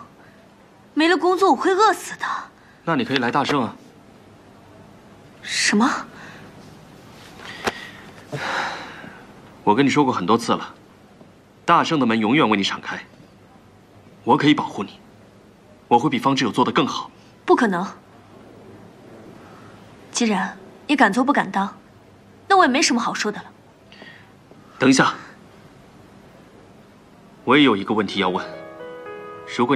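A young woman speaks close by, firmly and with feeling.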